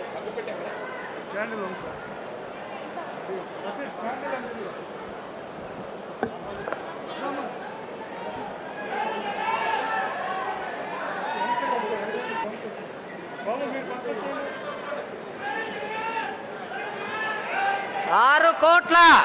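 A crowd of men talks and calls out all around, close by.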